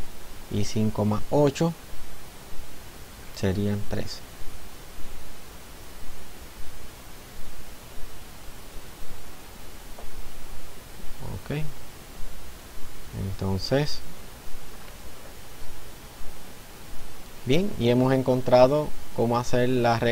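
A man speaks calmly and clearly into a microphone, in short bursts with pauses.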